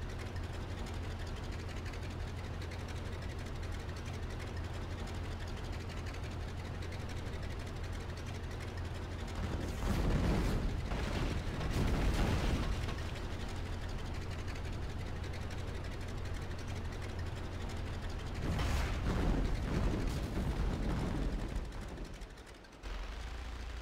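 An aircraft engine drones steadily at low pitch.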